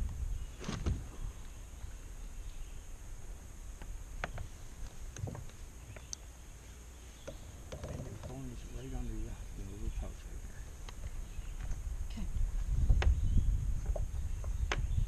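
Fishing gear clicks and knocks against a kayak.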